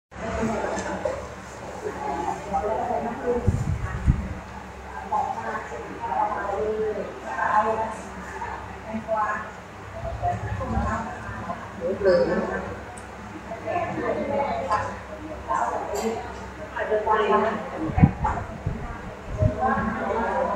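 A middle-aged woman speaks into a microphone, heard through loudspeakers.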